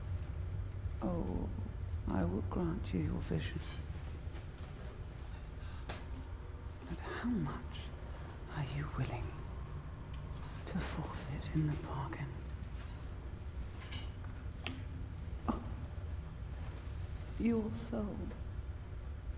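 A woman speaks softly and calmly, close by.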